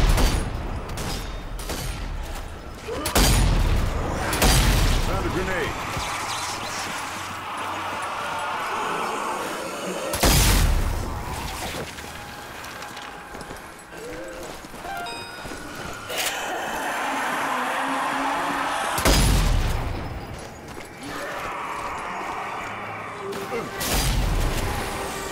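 Heavy gunshots boom loudly now and then.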